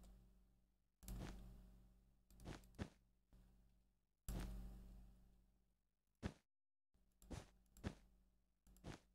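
Stone blocks thud softly as they are placed.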